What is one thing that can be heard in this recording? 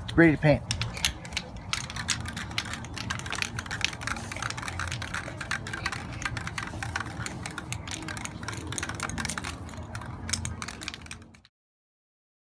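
Plastic bottle lids click and rattle as they are twisted.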